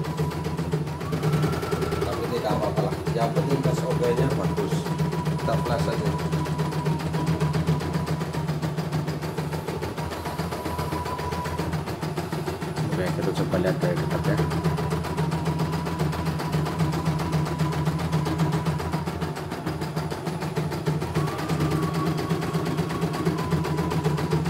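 An embroidery machine hums steadily.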